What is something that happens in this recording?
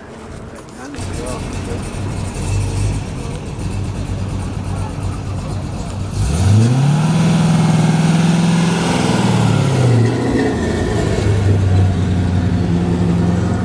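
A V8 sports car rumbles, then revs and pulls away.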